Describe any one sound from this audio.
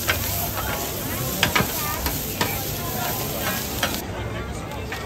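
Food sizzles on a hot griddle.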